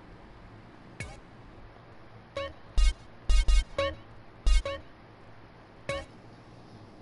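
Short electronic menu beeps chime as options are selected.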